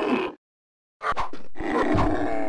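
A sword clashes with a sharp clang.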